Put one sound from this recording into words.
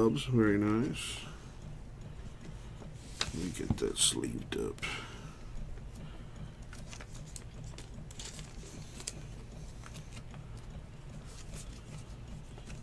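Trading cards rustle and flick softly as they are shuffled by hand.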